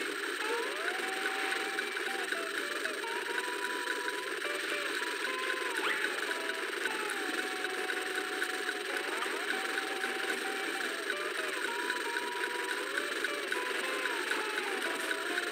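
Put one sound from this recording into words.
A cartoon character's footsteps patter quickly.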